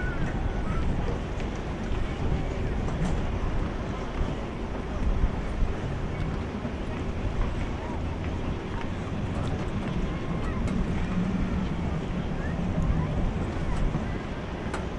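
A marching band plays music across an open outdoor field.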